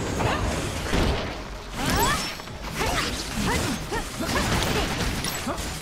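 Blade strikes land with sharp, heavy hits.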